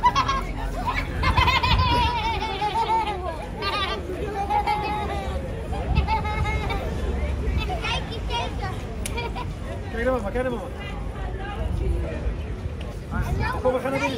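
Young children chatter nearby.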